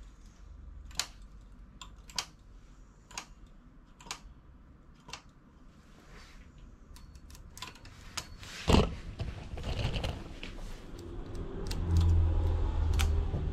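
Metal needles click sharply as a hand tool moves them.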